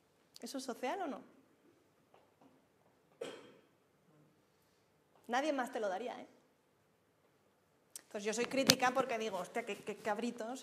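A young woman speaks in short phrases in a room with a slight echo.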